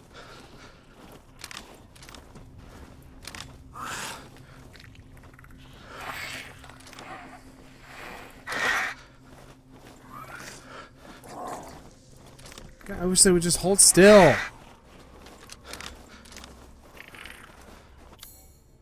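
A young man talks into a close microphone in a relaxed way.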